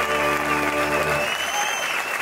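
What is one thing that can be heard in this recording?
An orchestra plays a final sustained chord that cuts off.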